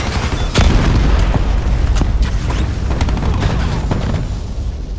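A rifle fires single loud shots.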